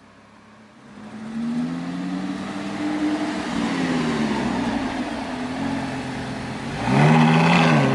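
A sports car engine idles with a deep rumble.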